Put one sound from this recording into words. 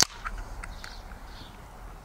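A can pops open with a hiss.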